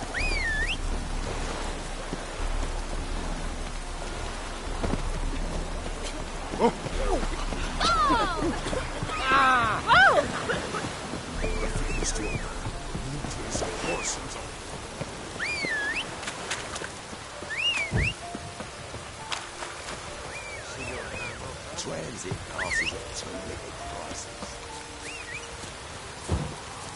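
Footsteps run steadily over dirt and wooden planks.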